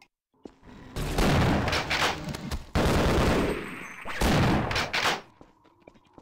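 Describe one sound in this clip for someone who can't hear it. Gunfire booms in loud, rough bursts.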